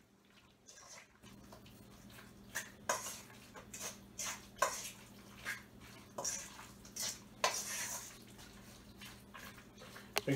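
A man mixes food in a metal bowl with his hands, scraping and clinking.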